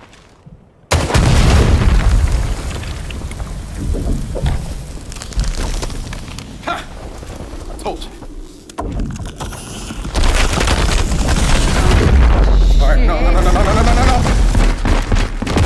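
Ice cracks and breaks apart with a loud rumble.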